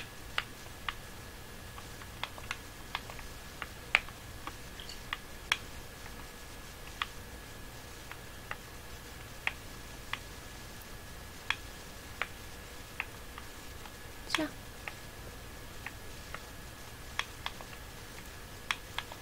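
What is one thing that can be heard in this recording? Short soft clicks sound now and then as puzzle pieces are picked up and set down.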